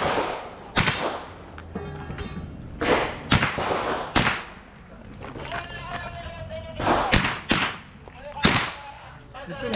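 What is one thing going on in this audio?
Pistol shots crack outdoors in quick bursts, echoing briefly.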